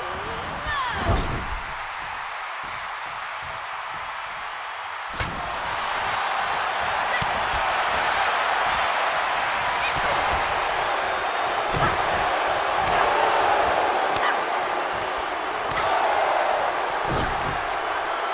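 Heavy thuds of bodies hitting each other and the ring floor ring out now and then.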